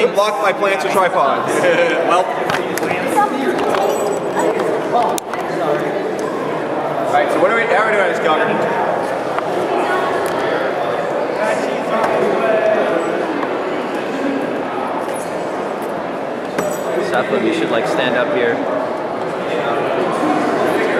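A crowd of young men and women chatter all around, close by, in an echoing hall.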